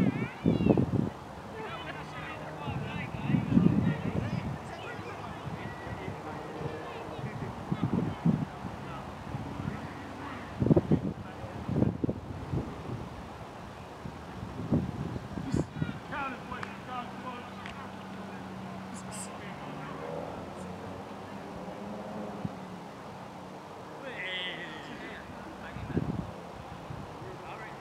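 Men chat casually at a distance outdoors.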